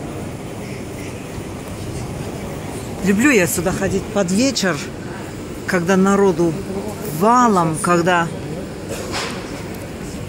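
A low hum of street noise goes on outdoors.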